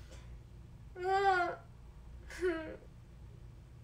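A young woman gasps and squeals in surprise.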